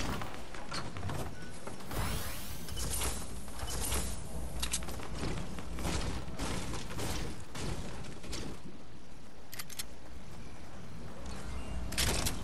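Wooden walls clatter as they are built and broken in a video game.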